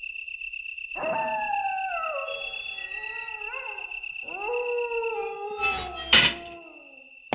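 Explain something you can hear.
A metal gate creaks slowly open.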